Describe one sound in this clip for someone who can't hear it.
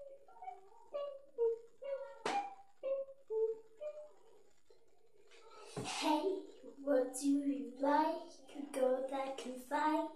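A young girl sings close to the microphone.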